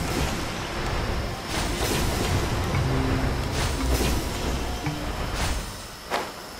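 Magical chimes shimmer as a glowing spark rises.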